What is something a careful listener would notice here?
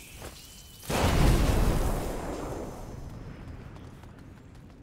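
A fire bursts into flame with a loud whoosh and crackles.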